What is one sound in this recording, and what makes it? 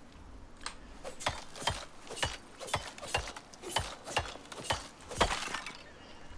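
A knife hacks repeatedly into an animal carcass.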